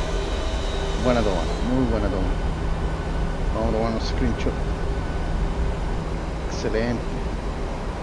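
A young man speaks briefly through a headset microphone.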